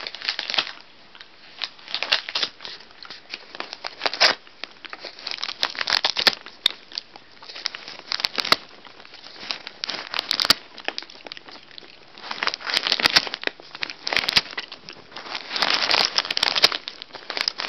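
A dog chews and gnaws on paper.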